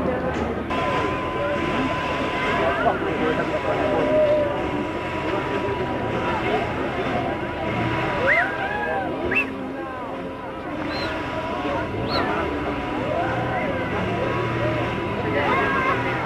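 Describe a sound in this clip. A steam locomotive hisses as it vents steam.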